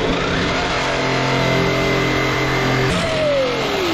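A power tool whirs steadily up close.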